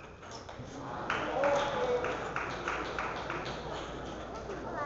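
A crowd applauds and cheers in an echoing hall.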